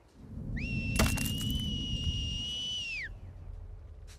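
A pistol fires a single loud shot, followed by a high ringing.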